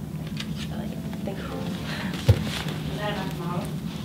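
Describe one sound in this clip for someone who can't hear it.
A leather chair creaks.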